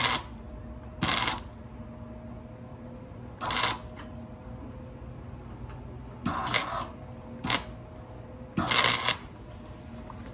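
A welder crackles and buzzes in short bursts.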